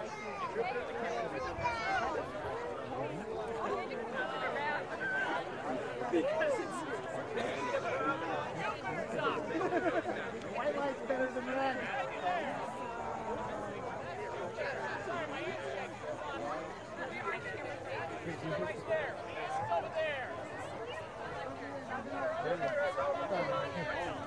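A crowd of men and women chatters and calls out excitedly outdoors.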